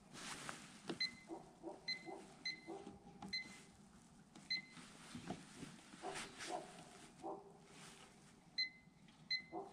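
An electronic device beeps with short, high chirps as buttons are pressed.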